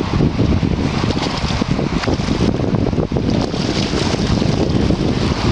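Lake water laps around an angler's waders.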